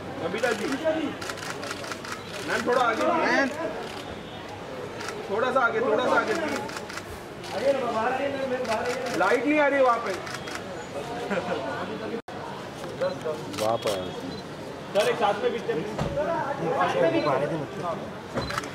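Men call out close by.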